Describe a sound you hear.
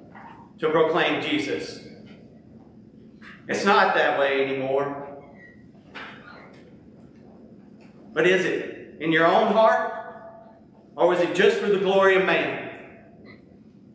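A man speaks calmly through a microphone in an echoing room, in short phrases with pauses.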